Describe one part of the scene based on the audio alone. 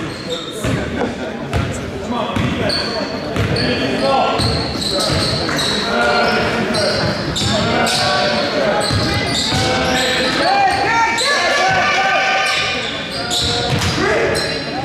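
Young people shout and call out with animation in a gym.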